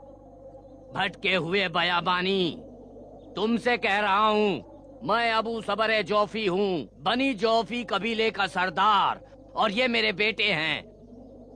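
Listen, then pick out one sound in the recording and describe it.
An elderly man speaks loudly and with animation, close by.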